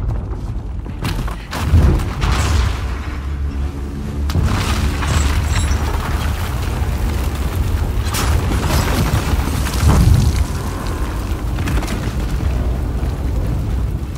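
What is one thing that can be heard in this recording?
Water rushes and roars loudly.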